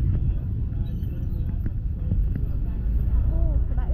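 Motorbikes ride past on a busy street.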